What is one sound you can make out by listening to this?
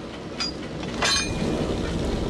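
A heavy metal stove door clanks open.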